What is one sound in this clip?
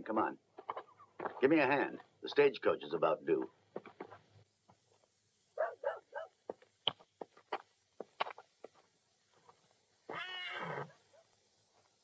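An older man speaks calmly and firmly, close by.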